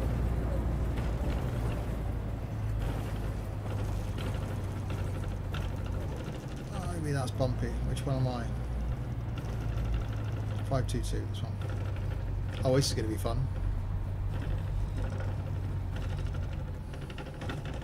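A bus engine hums steadily at low pitch.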